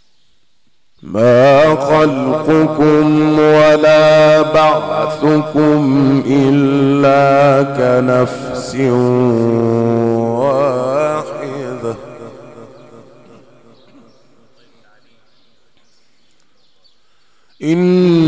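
A man chants in a long, melodic voice through a microphone, with echo.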